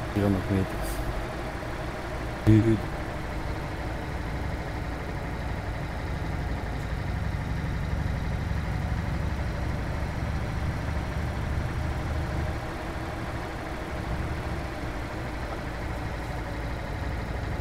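A truck's diesel engine hums steadily as it drives.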